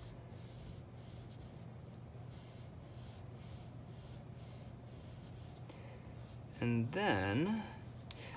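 An oil pastel scratches back and forth on paper in quick, even strokes.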